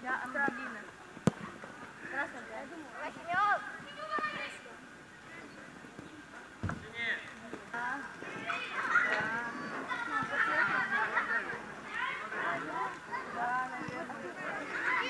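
Children shout and call out across an outdoor pitch.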